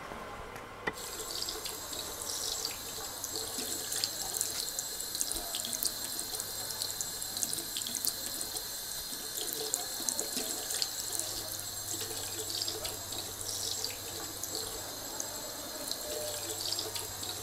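Water runs from a tap and splashes into a basin.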